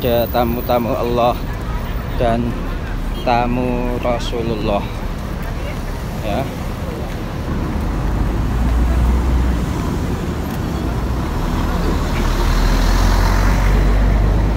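A crowd murmurs on a busy street.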